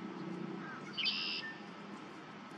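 A bird of prey gives a short burst of sharp, high calls nearby.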